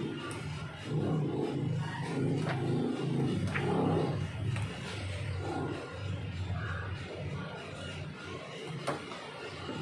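Books slide and tap on a wooden surface.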